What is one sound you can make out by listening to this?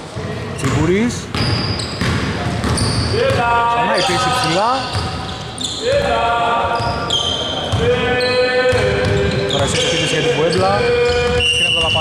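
A basketball bounces with dull thuds in a large echoing hall.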